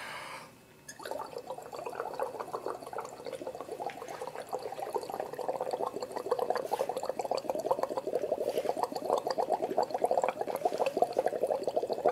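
Liquid bubbles steadily as a man blows through a straw.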